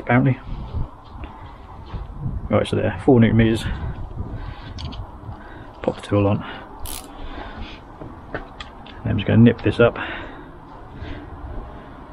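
Small metal tools click and clink in a hand.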